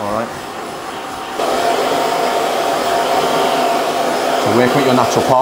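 A hair dryer blows steadily close by.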